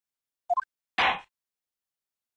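A wooden gavel bangs down once, sharply.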